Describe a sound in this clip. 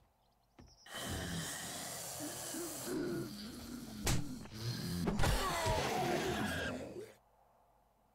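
A zombie snarls and growls up close.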